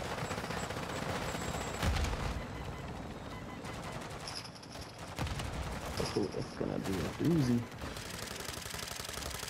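A helicopter's rotor thumps close by.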